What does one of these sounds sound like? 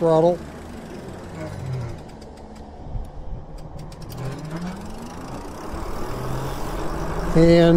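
An electric bike motor whines, rising and falling in pitch as the bike slows and speeds up.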